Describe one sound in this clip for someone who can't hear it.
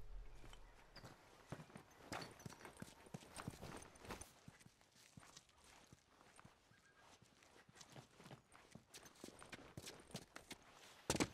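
Footsteps shuffle quickly over hard ground.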